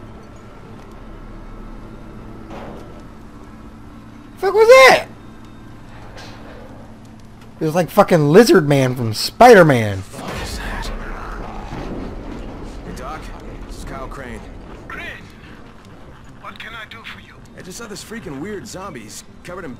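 A fire crackles in a barrel.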